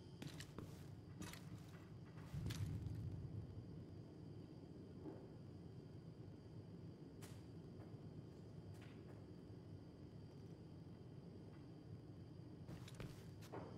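Short electronic menu clicks sound now and then.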